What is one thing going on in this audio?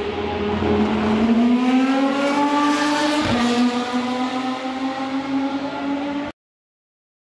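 A race car's engine screams loudly as it speeds past.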